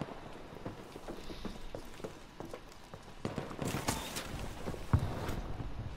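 Footsteps thud on a metal walkway.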